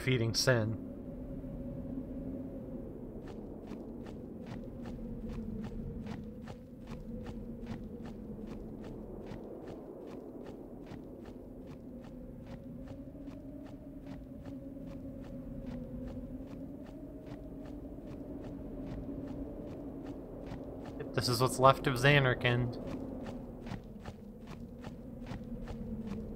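Soft, steady music with a low drone plays throughout.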